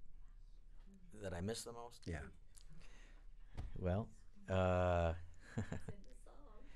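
An older man speaks expressively into a microphone, his voice rising into sung or drawn-out notes.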